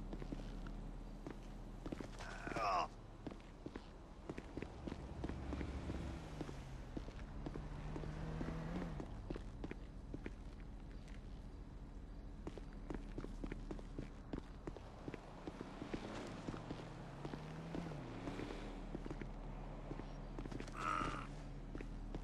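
Footsteps pad across a hard rooftop.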